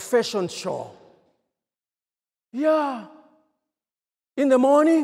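A man speaks passionately into a microphone, his voice carried over loudspeakers with a ringing echo.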